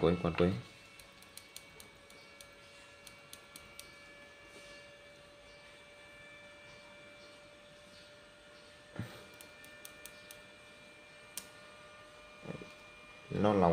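Wire ends click and tap against a circuit board.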